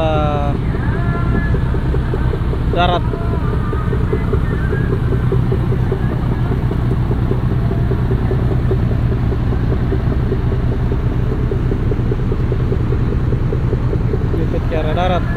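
Water splashes and churns against a hull.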